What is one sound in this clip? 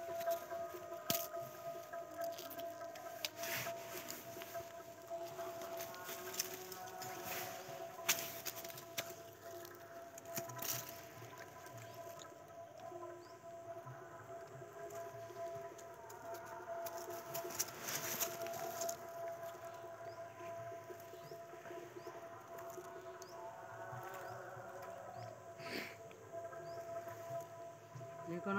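Dry leaves rustle under the feet of monkeys moving about on the ground.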